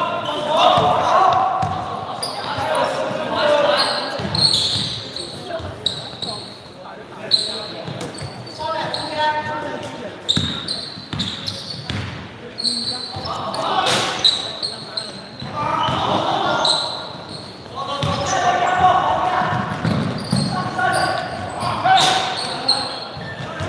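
A basketball bounces on a hardwood floor in an echoing hall.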